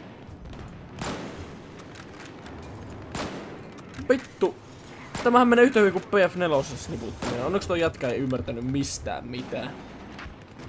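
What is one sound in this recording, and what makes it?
A rifle fires single loud shots at a steady pace.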